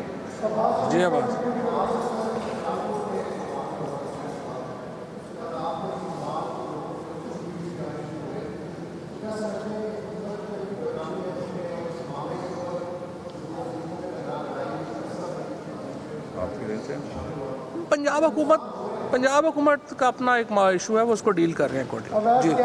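An older man speaks calmly into microphones.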